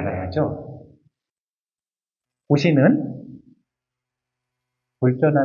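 A man speaks calmly into a microphone in short phrases.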